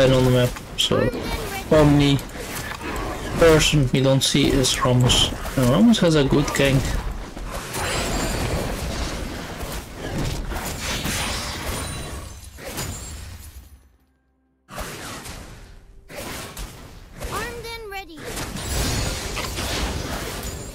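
Video game combat effects clash and thud.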